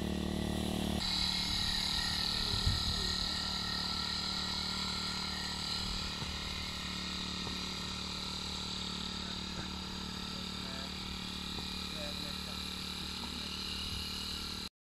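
A small motor drones steadily as a backpack sprayer runs.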